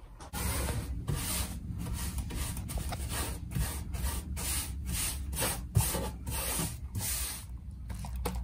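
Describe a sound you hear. A brush scrubs against a surface in quick repeated strokes.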